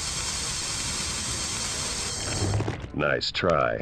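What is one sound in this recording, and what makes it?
A laser beam hisses and crackles against a wall.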